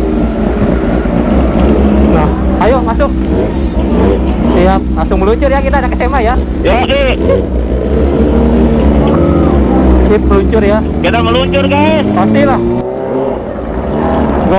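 Motorcycle engines idle with a steady, deep rumble close by.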